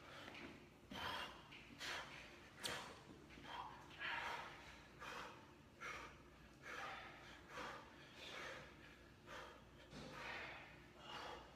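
A man breathes hard in rhythmic bursts.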